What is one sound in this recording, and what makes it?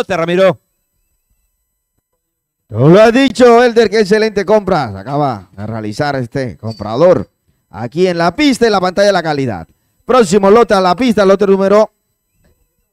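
A man speaks rapidly and with animation through a microphone.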